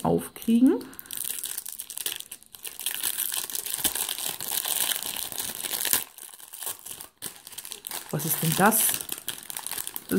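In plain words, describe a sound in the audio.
Crinkly plastic wrapping rustles and crackles close by.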